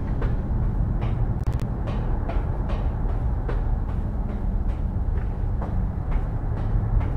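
Footsteps climb steadily up stairs.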